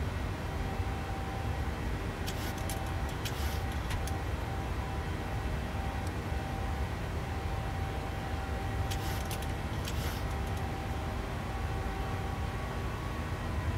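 Jet engines hum with a steady low roar.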